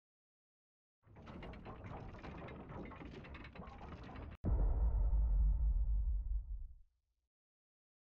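A metal shutter rumbles and rattles as it rolls up.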